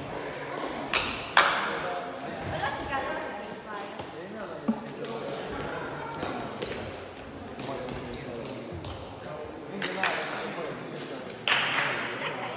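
Players hit a shuttlecock back and forth with sharp racket smacks.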